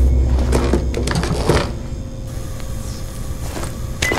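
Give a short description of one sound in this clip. A wooden chest lid thuds open.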